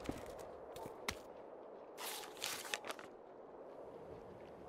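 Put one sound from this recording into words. A sheet of paper rustles as a page turns.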